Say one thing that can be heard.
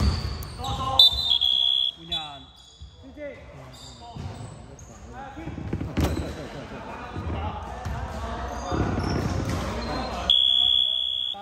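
A referee blows short, shrill whistle blasts.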